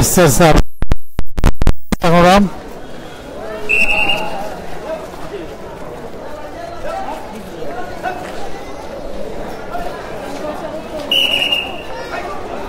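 A crowd of men and women talks and calls out all around.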